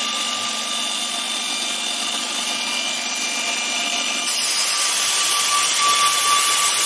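A belt grinder runs with a steady whir.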